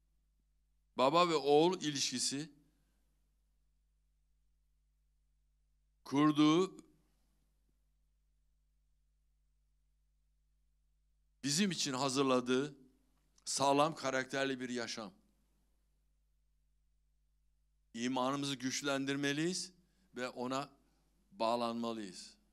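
An elderly man speaks calmly into a microphone over a loudspeaker, with pauses between phrases.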